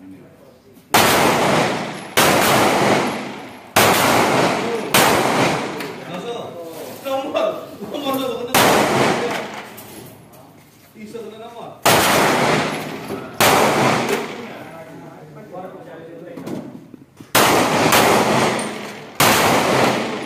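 Pistol shots ring out one at a time, each echoing loudly outdoors.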